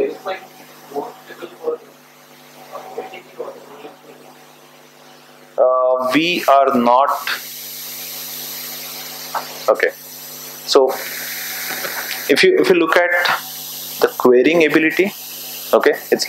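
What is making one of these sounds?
A man talks steadily, heard from some distance in a reverberant room.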